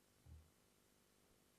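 A dull thump sounds close to a microphone.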